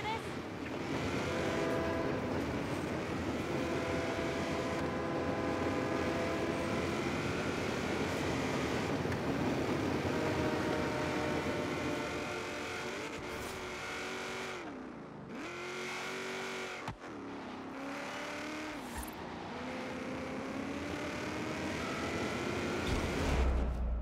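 A car engine roars and revs up through the gears.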